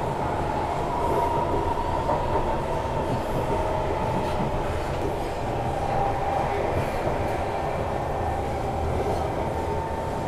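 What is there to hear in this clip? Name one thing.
A train's motor whines with a steady high hum.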